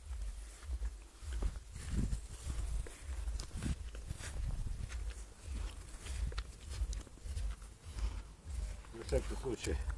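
Footsteps swish through grass outdoors.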